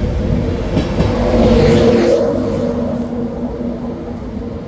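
A locomotive engine roars loudly as it passes.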